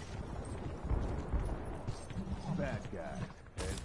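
Shotguns blast in heavy, booming bursts.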